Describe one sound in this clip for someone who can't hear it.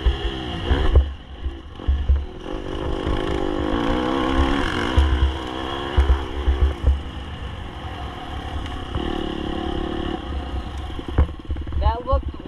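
Tyres bump and rattle over rough dirt.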